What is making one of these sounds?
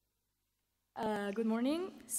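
A young woman speaks loudly into a microphone.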